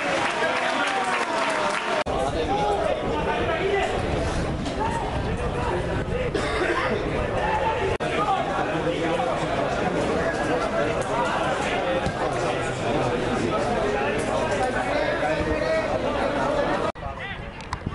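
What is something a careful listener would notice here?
A crowd of spectators chatters nearby.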